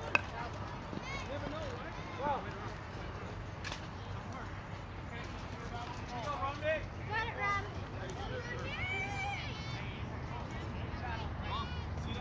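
Young girls shout and cheer in the distance outdoors.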